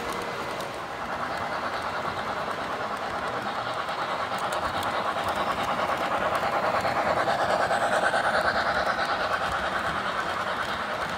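A small steam locomotive chuffs as it passes close by.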